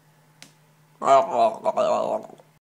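A teenage boy shouts loudly close by.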